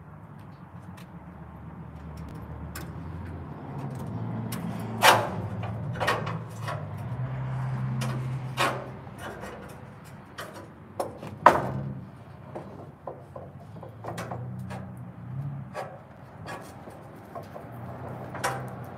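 Metal clanks and knocks sharply, on and off.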